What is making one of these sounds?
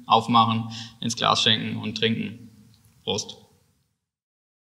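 A young man speaks calmly and cheerfully, close to a microphone.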